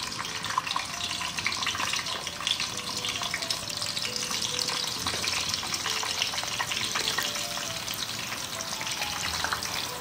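Chopsticks tap against a pan.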